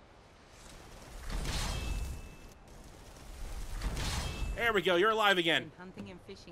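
A magic spell crackles and whooshes as it is cast.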